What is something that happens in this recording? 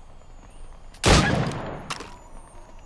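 A musket fires with a loud boom that echoes away.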